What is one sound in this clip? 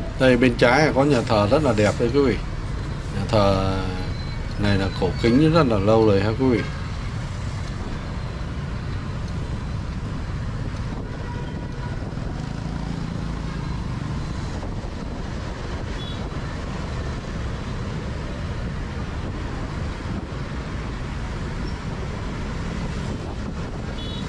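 Motorbike engines hum and rumble steadily in busy street traffic.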